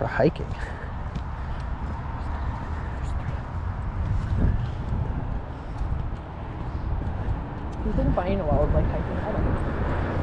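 Fabric rubs and brushes right against the microphone.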